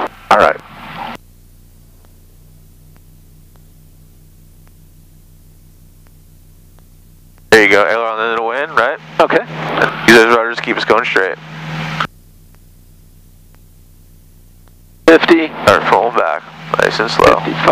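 A man talks calmly over a headset intercom, in bursts with silent gaps.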